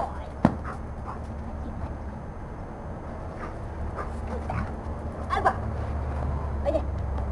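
A young woman talks playfully to a dog nearby.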